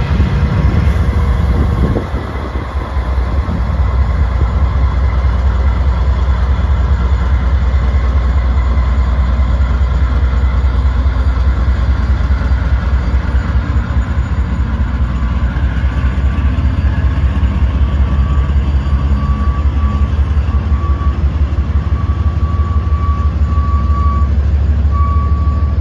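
Diesel locomotives rumble loudly as they pass close by.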